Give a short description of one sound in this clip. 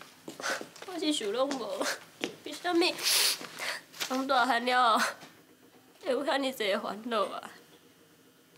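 A young woman speaks sadly nearby.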